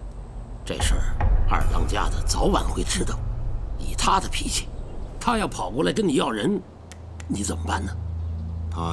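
A middle-aged man speaks with animation.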